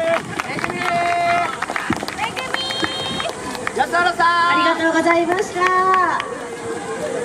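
Young dancers shout loudly in chorus outdoors.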